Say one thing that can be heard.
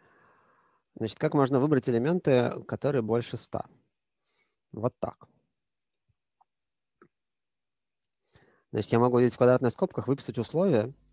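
A man speaks calmly and close to a microphone, in bursts with pauses.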